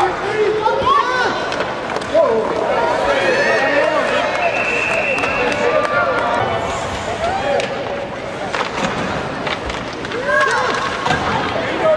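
Young children shout and call out in a large echoing rink.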